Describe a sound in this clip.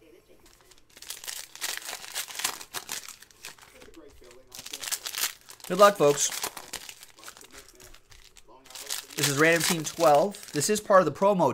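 Foil card packs crinkle and rip open.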